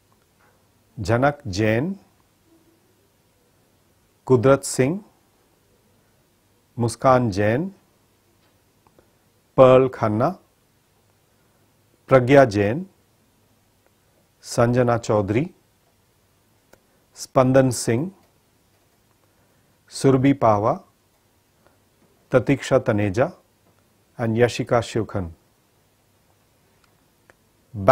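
A man reads out short phrases one at a time through a microphone, with pauses between them.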